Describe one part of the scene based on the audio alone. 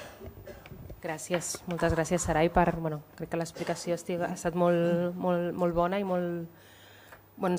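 A woman speaks calmly into a microphone, heard through loudspeakers in a large room.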